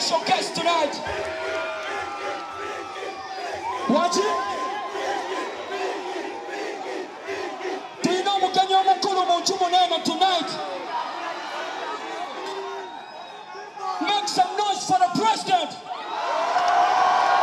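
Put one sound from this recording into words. A man sings loudly into a microphone over loudspeakers.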